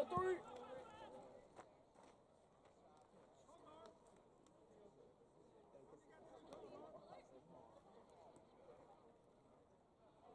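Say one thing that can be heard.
A baseball smacks into a leather mitt.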